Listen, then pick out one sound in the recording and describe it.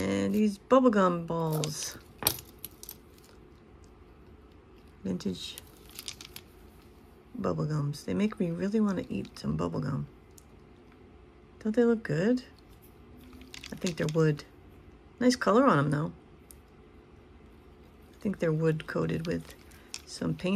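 Plastic beads clack together as a necklace is handled.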